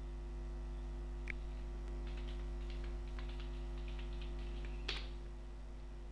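Keys click on a computer keyboard as someone types.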